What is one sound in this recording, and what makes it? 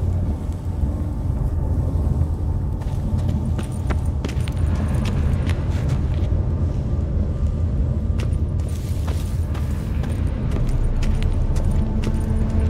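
Footsteps crunch over rough ground.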